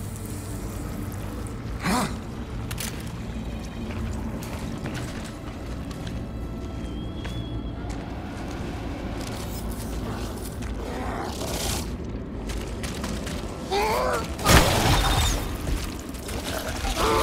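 Footsteps crunch on loose rubble.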